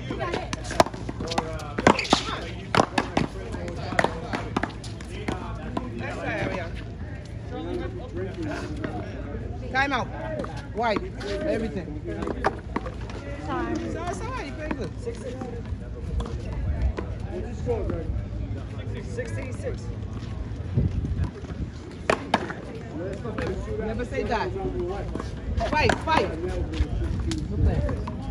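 A ball smacks off paddles and a wall with sharp pops.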